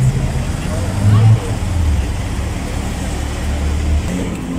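A sports car engine growls loudly as the car drives by.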